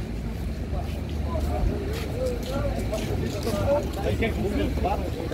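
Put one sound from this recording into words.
People chatter nearby as they walk past.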